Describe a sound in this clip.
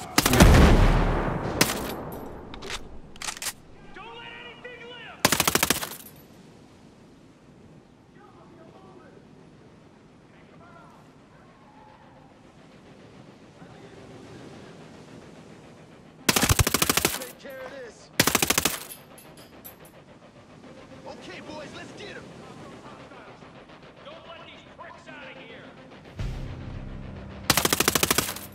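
Rapid bursts of automatic gunfire ring out close by.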